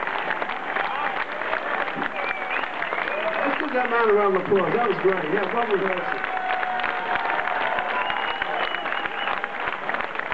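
An audience claps loudly in a large hall.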